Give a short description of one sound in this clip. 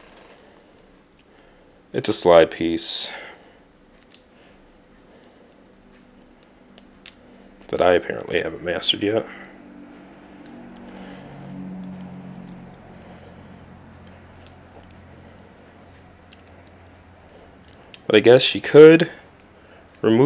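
Small plastic parts click and snap together.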